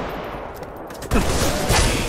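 Gunfire from a video game rifle rattles in bursts.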